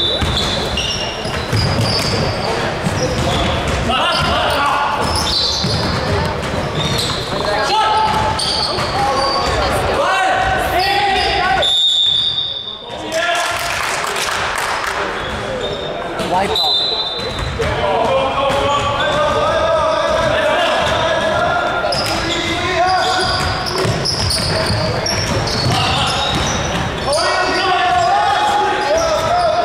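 Young men call out and shout to each other during play.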